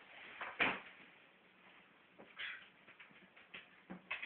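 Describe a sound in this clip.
A dog's claws click on a hard floor as it jumps.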